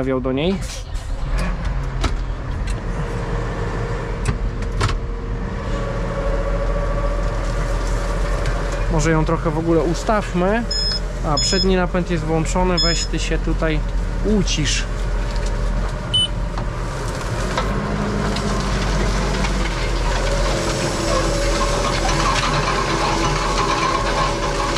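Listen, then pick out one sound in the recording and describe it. A tractor engine drones steadily inside a closed cab.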